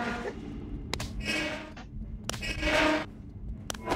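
A metal locker door creaks and clanks open.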